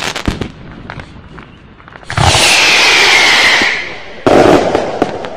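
Fireworks bang and crackle loudly overhead.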